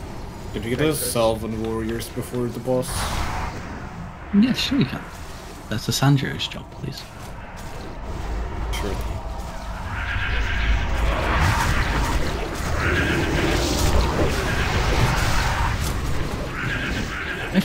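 Magic spells blast and crackle in a fierce battle.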